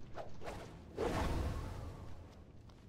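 A fiery blast bursts with a loud whoosh.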